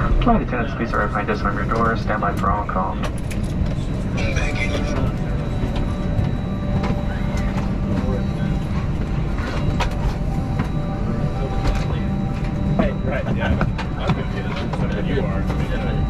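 An aircraft cabin hums with a steady low drone.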